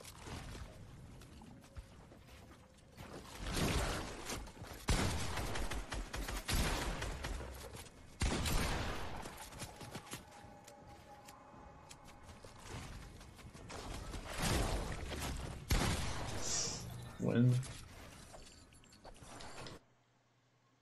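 Gunshots and explosions from a video game crack and boom loudly.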